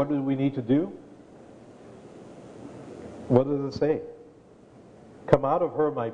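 An elderly man reads aloud into a microphone, heard in a large echoing hall.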